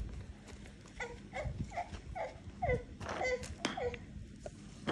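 A dog whines in short, falling cries close by.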